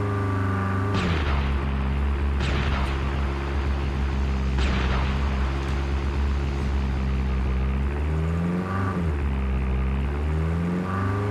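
A vehicle engine hums steadily and rises and falls in pitch.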